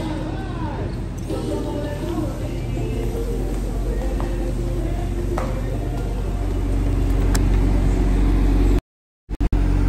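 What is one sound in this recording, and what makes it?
A man talks close by, calmly.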